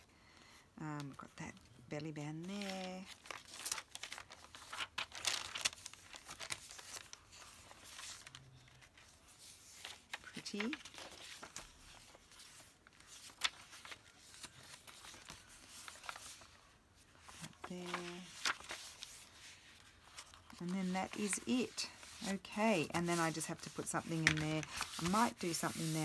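Paper pages rustle and flip as they are turned.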